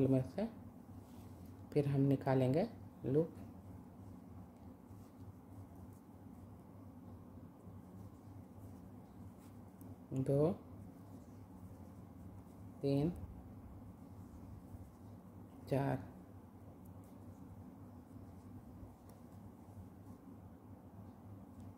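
Knitting needles click softly as yarn is worked.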